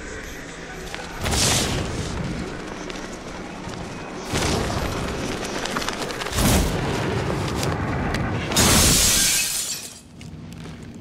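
Wind rushes loudly in gusts.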